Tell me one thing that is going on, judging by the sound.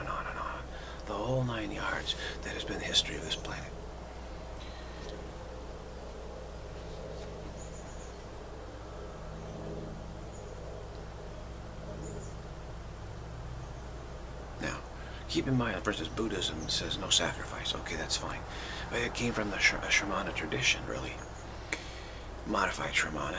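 A middle-aged man speaks calmly and close to the microphone, with pauses.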